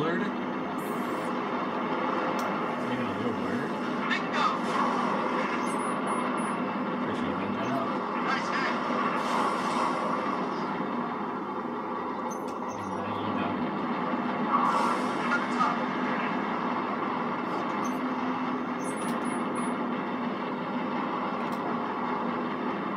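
Spaceship engines roar steadily through a loudspeaker.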